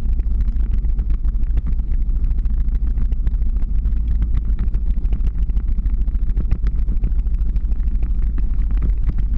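Skateboard wheels rumble and clatter over rough pavement.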